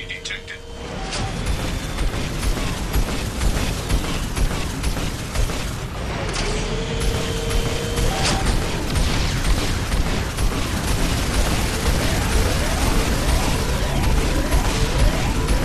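Gunfire and explosions crack and boom in rapid bursts.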